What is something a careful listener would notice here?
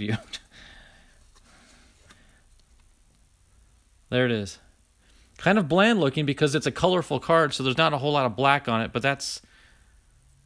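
A plastic card case clicks and rubs between fingers.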